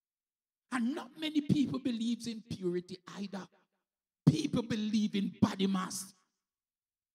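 A man preaches with animation into a microphone, heard through loudspeakers.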